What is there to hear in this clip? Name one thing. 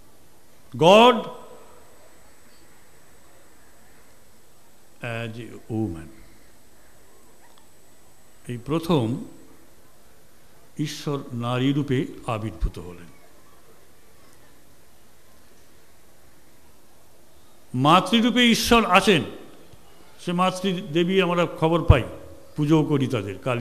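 A middle-aged man speaks slowly and deliberately into a microphone, with pauses between phrases.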